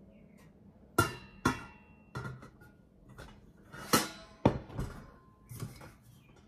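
A steel lid clanks onto a metal pot.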